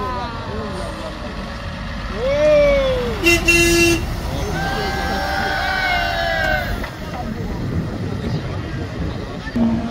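A diesel tow truck drives slowly by.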